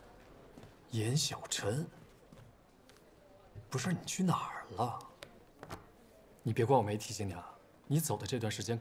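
A young man talks with animation nearby.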